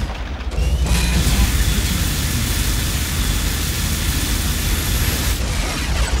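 An energy weapon fires with a buzzing crackle.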